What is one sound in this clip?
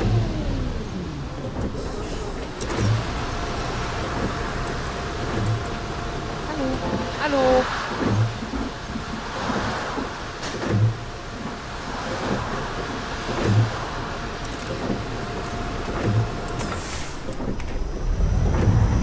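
A bus engine idles.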